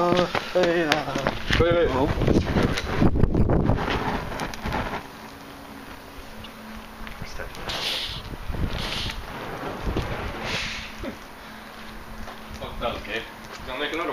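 A burning flare fizzes and hisses.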